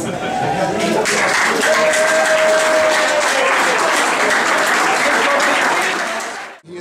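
A crowd chatters loudly in an echoing room.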